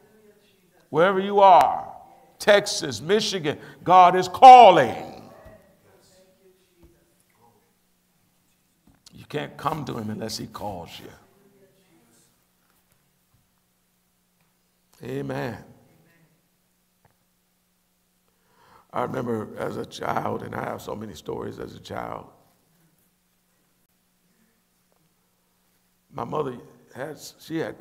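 A middle-aged man speaks into a microphone, preaching with animation and pauses.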